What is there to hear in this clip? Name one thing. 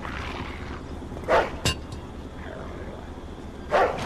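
Footsteps scuff on concrete.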